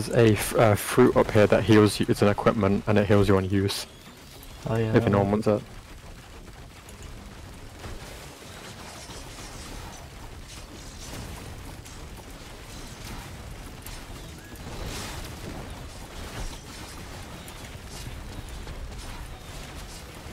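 Energy weapons fire with crackling, fizzing bursts.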